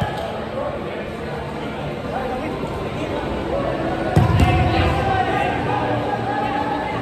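Young men shout and call to each other across a large echoing hall.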